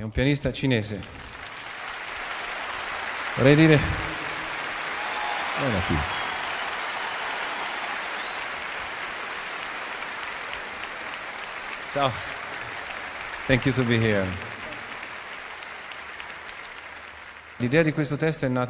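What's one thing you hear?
A large crowd applauds outdoors.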